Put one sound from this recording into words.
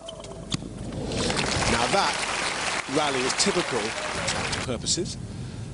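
A crowd applauds and cheers loudly.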